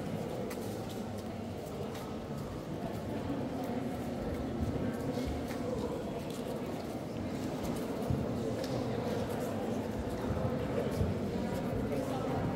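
Footsteps shuffle and tap on a stone floor.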